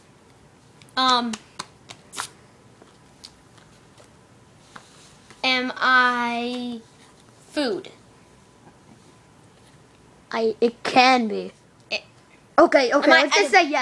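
A young boy talks close by, in short animated bursts.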